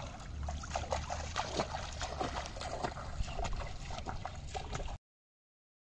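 Footsteps slosh through shallow water.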